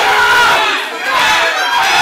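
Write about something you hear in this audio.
A young man shouts loudly.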